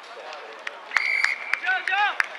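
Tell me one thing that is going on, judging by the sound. A referee's whistle blows a sharp blast.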